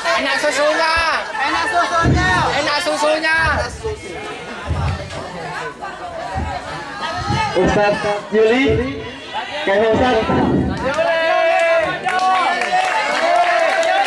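A crowd of young men and women sings and chants loudly together outdoors.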